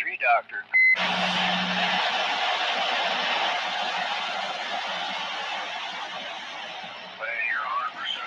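Static hisses loudly from a radio receiver.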